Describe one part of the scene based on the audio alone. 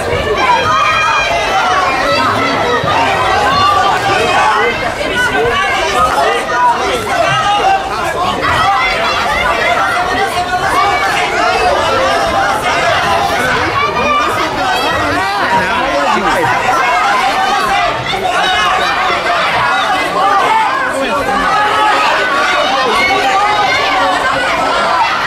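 A crowd of spectators talks and calls out loudly in a large echoing hall.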